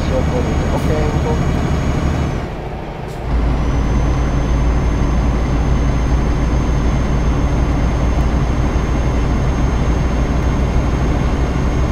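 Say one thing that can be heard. A truck engine rumbles steadily while driving.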